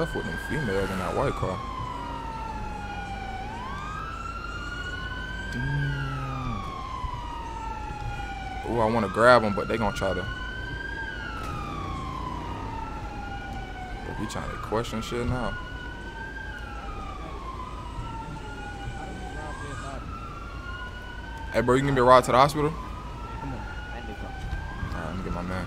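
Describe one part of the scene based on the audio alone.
A siren wails, rising and falling steadily.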